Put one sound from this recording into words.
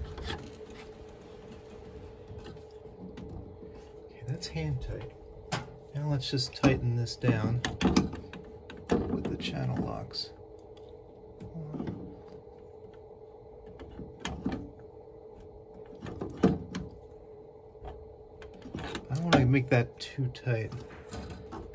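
Hands knock and tap against plastic and metal parts of a machine.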